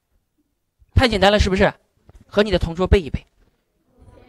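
Children read out together in chorus.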